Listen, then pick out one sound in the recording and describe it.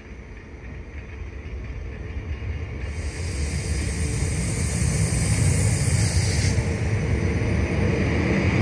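A train pulls away with a rumble that slowly grows louder.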